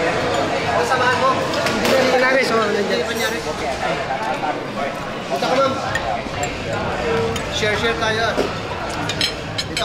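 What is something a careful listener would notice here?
A crowd of people chatter in the background.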